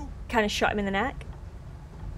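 A young woman speaks briefly and with animation into a close microphone.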